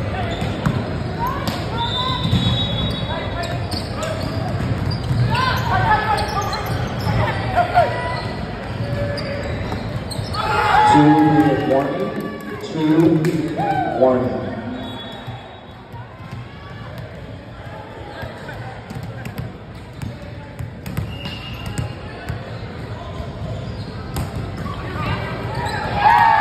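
Sneakers squeak on the hard court floor.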